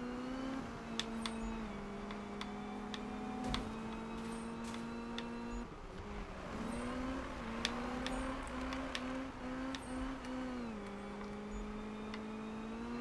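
A car engine roars steadily at high speed, shifting pitch as gears change.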